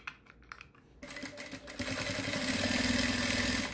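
A sewing machine whirs as it stitches.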